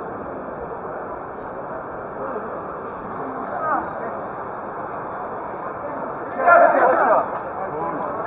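A crowd of men and women murmurs and chatters nearby.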